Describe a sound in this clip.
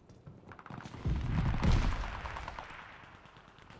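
Gunshots boom and rumble in a video game.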